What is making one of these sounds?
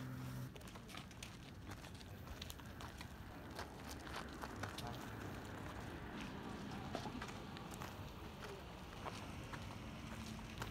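Footsteps crunch on gravel as people walk past.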